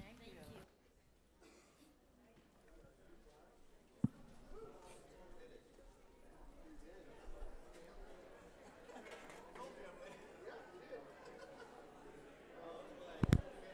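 A crowd of people murmurs and chats quietly.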